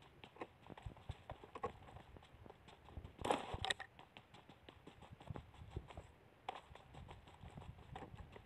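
Footsteps run quickly over the ground.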